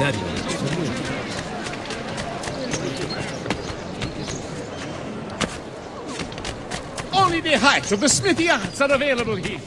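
Quick footsteps run across stone paving.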